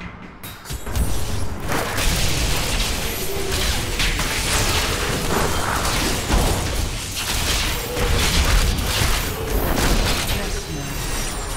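Magic spells crackle and blast loudly in rapid bursts.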